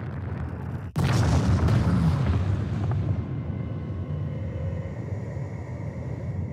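A huge blast booms and rumbles deeply.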